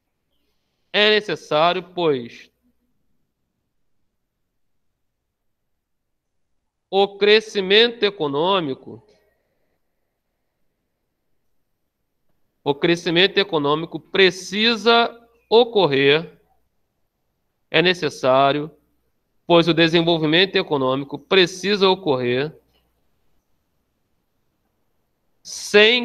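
A man speaks calmly through a microphone in short phrases with pauses.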